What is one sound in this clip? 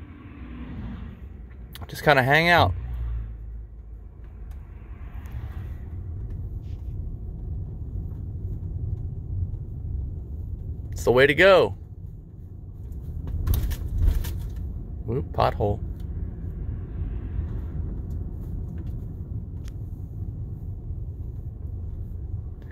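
A car hums steadily along the road, with a low rumble of tyres.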